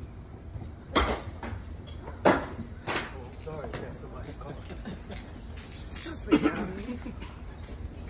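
Thumps sound from a car's body as people move about the car.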